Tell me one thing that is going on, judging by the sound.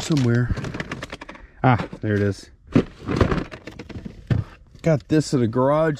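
Plastic packages rustle and knock as they are moved about.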